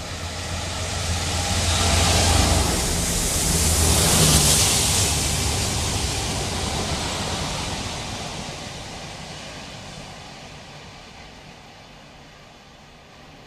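A Class 66 diesel locomotive rumbles past beneath and fades into the distance.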